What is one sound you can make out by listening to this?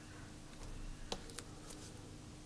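Fingertips tap lightly on a phone's touchscreen.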